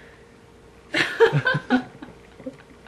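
A young woman laughs loudly, close by.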